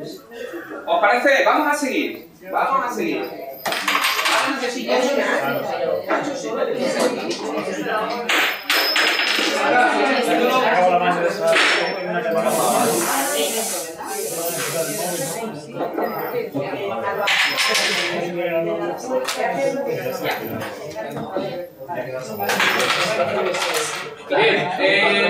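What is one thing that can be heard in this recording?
Several women chatter quietly nearby.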